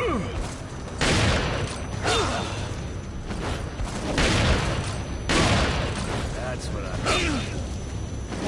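Blows thud hard during a fight.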